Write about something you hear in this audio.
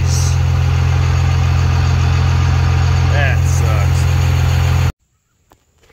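A fuel pump motor hums steadily.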